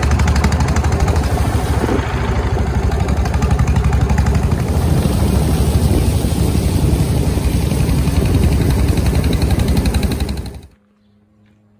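A boat engine rumbles loudly and steadily close by.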